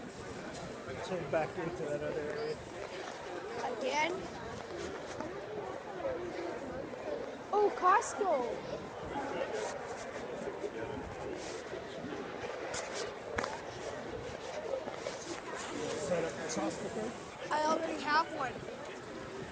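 Nearby voices chatter in short bursts.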